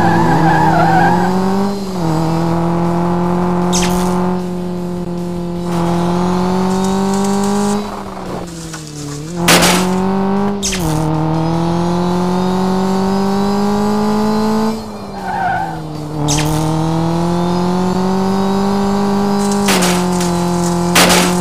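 A racing car engine roars steadily, its pitch rising and falling with gear changes.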